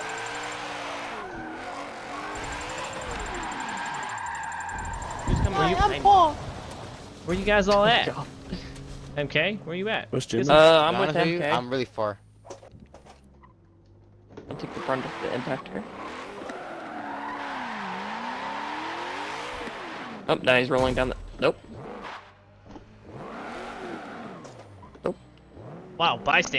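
Tyres screech as a car slides through corners.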